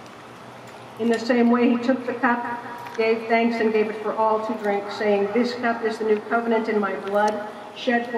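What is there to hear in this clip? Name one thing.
An elderly woman chants in song through a microphone.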